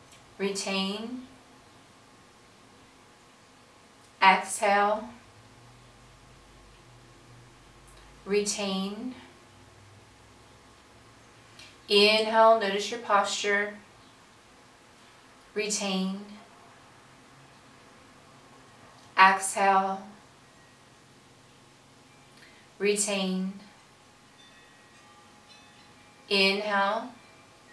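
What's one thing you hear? An older woman speaks calmly and slowly in short phrases, close to a microphone, with long pauses.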